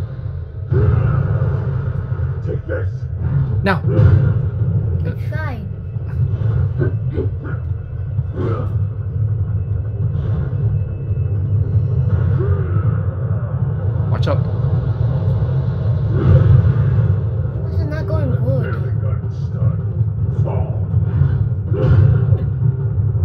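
A deep rumbling music score plays steadily.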